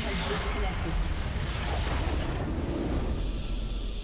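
Magic blasts and explosions crash loudly in a game battle.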